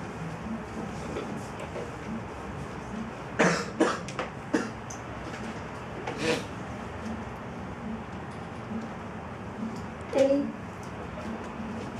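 A middle-aged woman reads aloud through a microphone.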